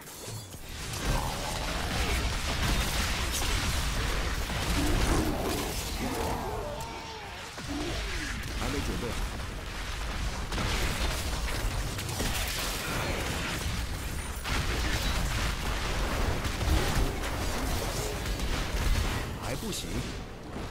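Spell blasts and explosions boom in a fast game battle.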